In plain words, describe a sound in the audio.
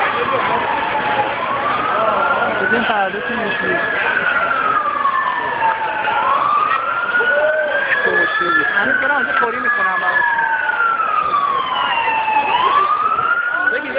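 A crowd of people chatters in the street.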